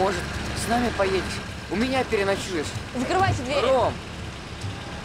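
A boy speaks pleadingly up close.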